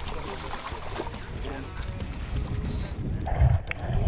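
Water splashes and sloshes as a person surfaces.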